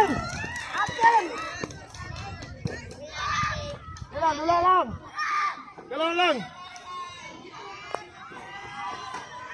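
Children shout and cheer loudly outdoors.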